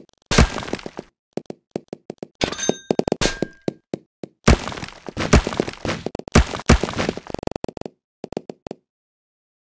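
Game blocks smash apart with rapid crunching bursts.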